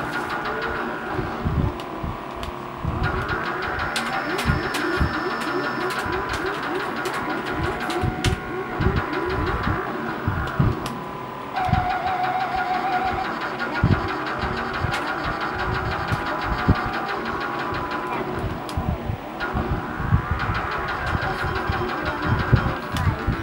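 Electronic game music plays with a quick beat.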